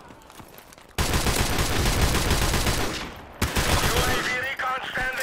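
Rapid gunfire rattles loudly in bursts.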